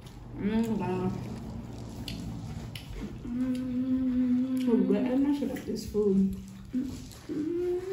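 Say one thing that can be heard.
A woman speaks with animation close by, drawing out her words.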